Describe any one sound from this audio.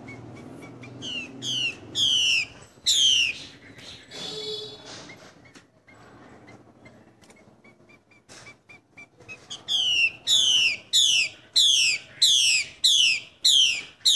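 A caged bird sings loud, repeated falling whistles close by.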